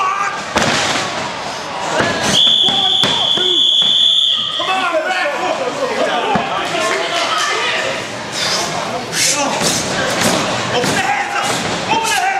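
Bodies slam onto a wrestling ring mat with loud thuds.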